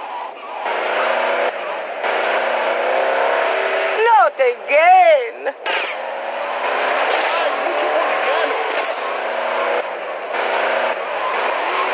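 Car tyres skid and squeal on loose ground.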